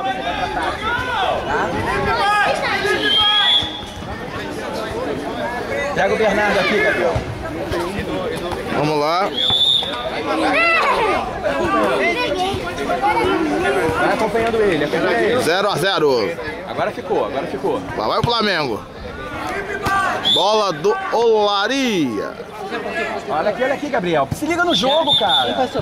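Children shout and call out excitedly close by.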